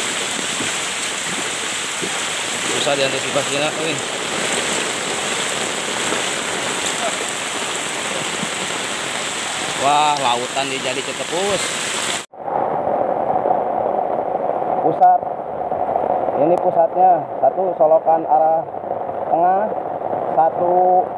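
Floodwater rushes and splashes along a street.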